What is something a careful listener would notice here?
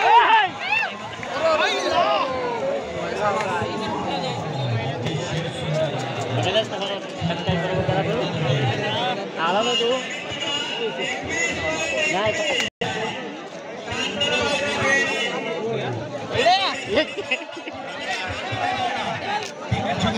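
Men nearby talk loudly and call out to each other.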